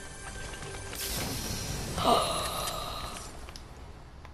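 A treasure chest hums and chimes as it opens.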